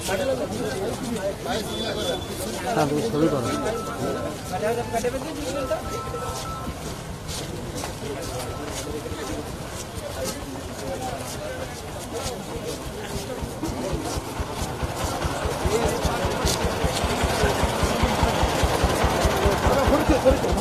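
Many feet shuffle along a road.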